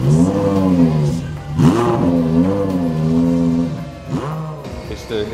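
A sports car engine idles and revs loudly through its exhaust.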